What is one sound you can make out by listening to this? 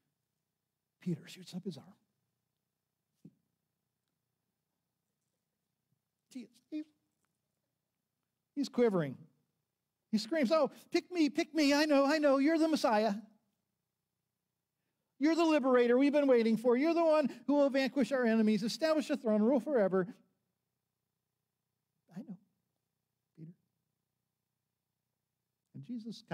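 An elderly man speaks through a microphone with long pauses, his voice rising with emphasis.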